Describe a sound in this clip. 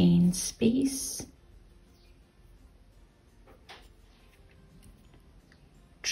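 A crochet hook softly scrapes and rustles through yarn.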